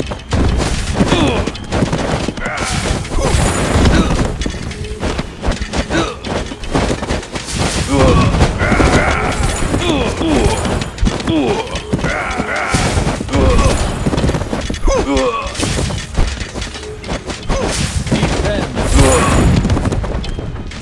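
Weapons clash and explosions burst in a busy game battle.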